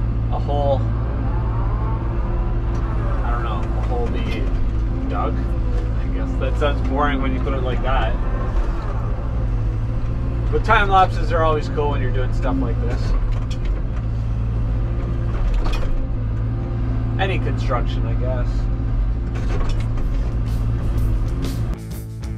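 A heavy diesel engine rumbles steadily close by.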